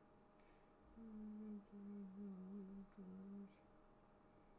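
A young woman hums briefly over an online call.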